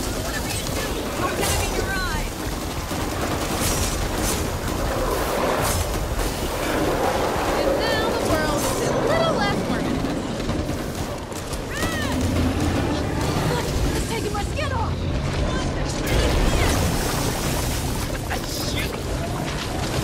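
Monsters snarl and shriek.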